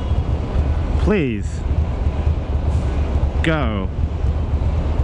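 A man speaks nearby in short calls.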